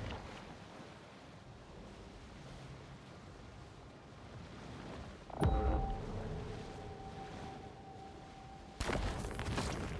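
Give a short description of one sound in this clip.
Water splashes and swishes as a large fish swims at the surface.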